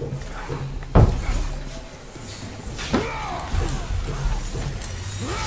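Blades slash and strike in a fight.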